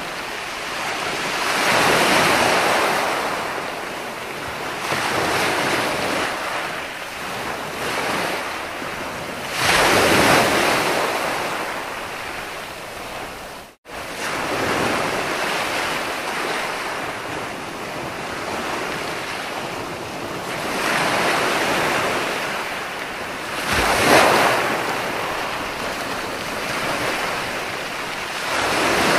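Foamy surf washes and hisses up the sand.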